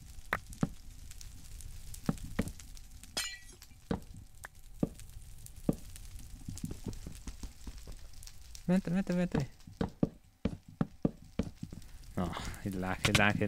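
Short knocks sound as blocks are placed and broken in a game.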